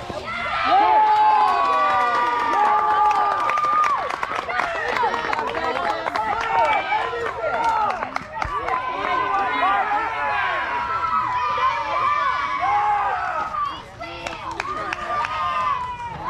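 Several young girls and women cheer and shout loudly, close by, outdoors.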